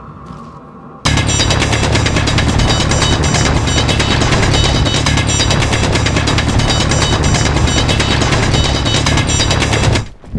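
A drill grinds loudly and steadily into rock.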